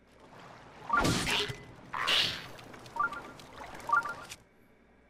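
Short game chimes ring out.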